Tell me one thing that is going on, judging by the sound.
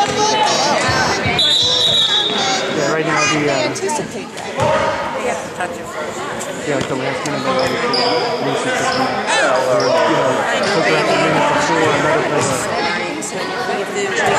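Children and adults chatter and call out close by in a large echoing hall.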